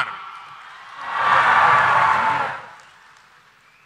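A large crowd cheers.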